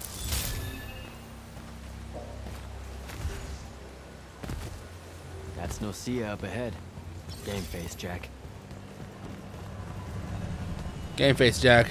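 Footsteps thud along on a hard path.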